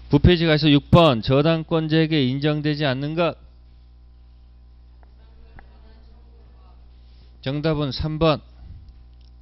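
A man speaks with animation into a close microphone, pausing between phrases.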